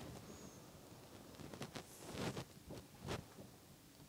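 A paintbrush dabs and brushes softly on canvas.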